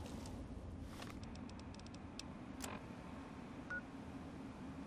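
A handheld device clicks and beeps as its menus change.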